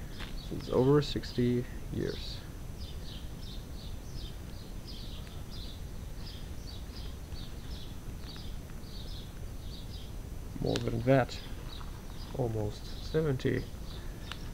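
Leather rustles softly as a hand handles it.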